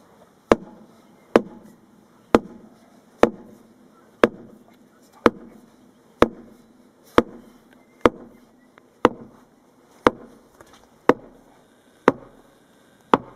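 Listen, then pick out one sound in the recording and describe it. A metal post rammer strikes a fence post with loud, regular clanging thuds.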